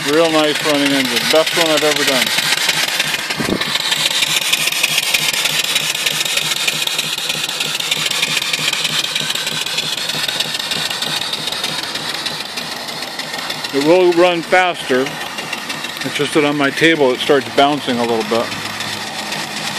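A small steam engine chugs steadily.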